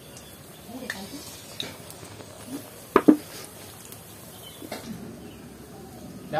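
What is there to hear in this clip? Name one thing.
Batter sizzles and crackles as it fries in hot oil.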